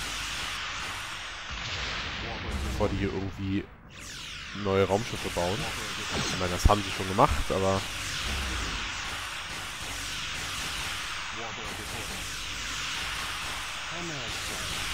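Laser weapons fire and hum steadily.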